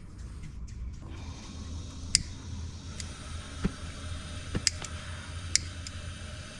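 A gas burner hisses steadily once lit.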